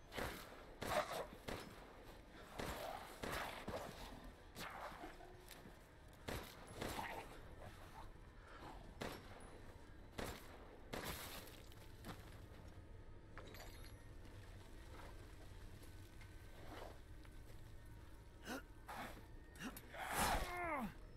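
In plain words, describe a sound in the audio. A creature growls and snarls nearby.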